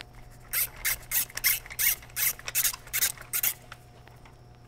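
A ratchet wrench clicks in quick bursts.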